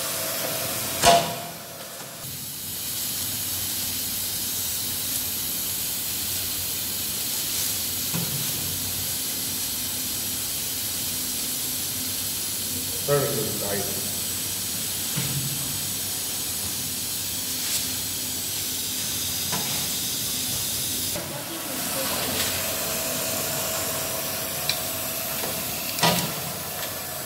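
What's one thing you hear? A machine press thumps down with a clank.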